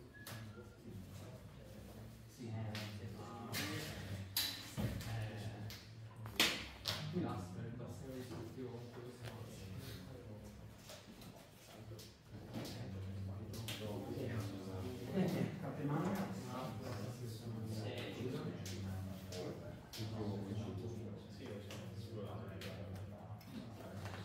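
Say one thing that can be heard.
Cards riffle and flick as they are shuffled in the hands.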